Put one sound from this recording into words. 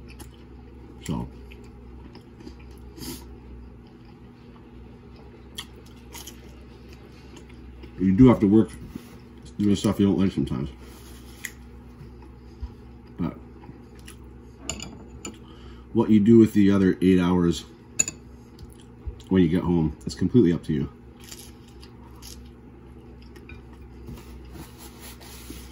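A man chews food with his mouth open.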